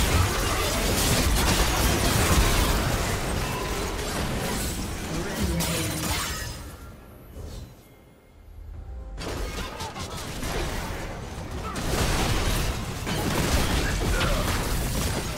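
Fantasy video game battle effects crackle and clash.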